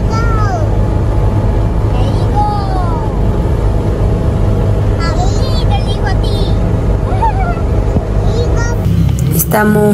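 A vehicle engine rumbles low and steadily.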